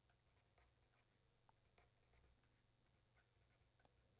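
A marker pen squeaks and scratches as it writes on paper.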